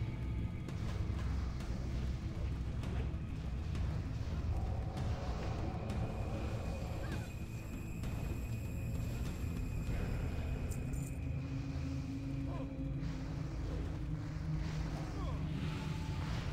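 Fire spells roar and crackle.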